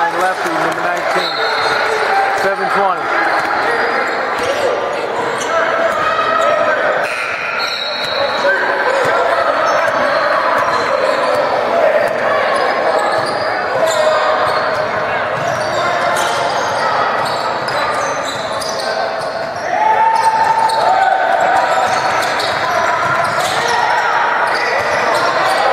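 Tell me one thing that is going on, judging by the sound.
A crowd of young people talks and shouts in a large echoing hall.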